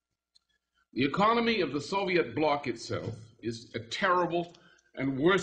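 An older man speaks steadily into a microphone.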